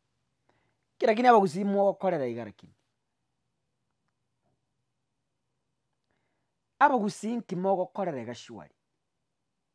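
A man speaks with animation into a close clip-on microphone, in short bursts with pauses.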